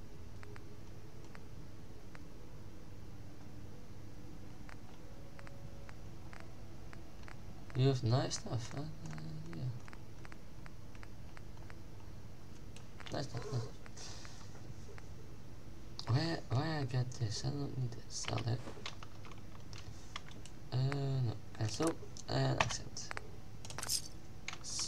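Soft menu clicks tick as items are scrolled through.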